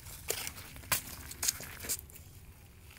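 A hoe digs into soil.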